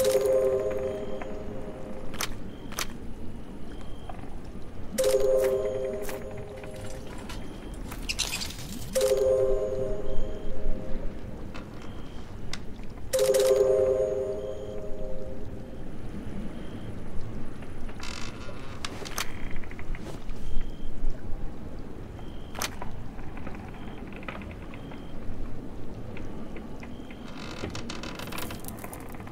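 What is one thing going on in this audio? Soft game chimes and clicks sound as items are picked out.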